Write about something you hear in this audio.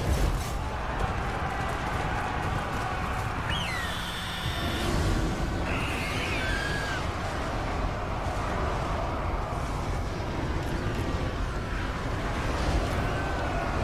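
A battle roars.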